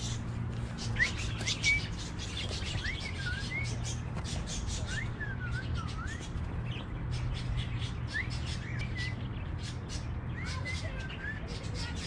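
Birds chirp and tweet nearby.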